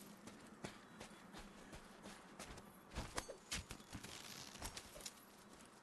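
Footsteps crunch on sandy ground.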